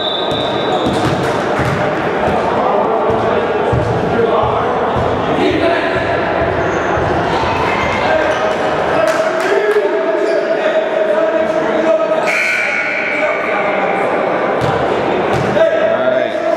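Many voices chatter in a large echoing gym.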